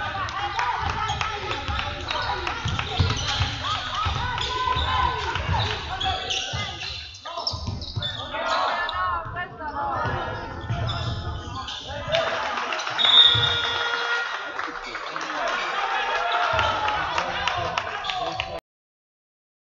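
Sneakers squeak on a hard court.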